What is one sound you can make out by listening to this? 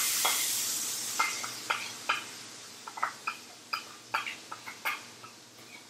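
Sauce pours from a ladle into a hot pan.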